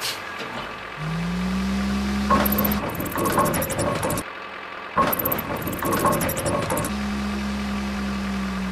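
A crane motor whirs as it lifts a load.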